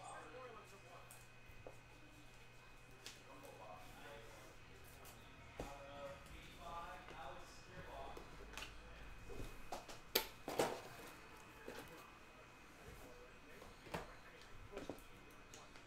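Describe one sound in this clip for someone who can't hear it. Trading cards flick and rustle between fingers.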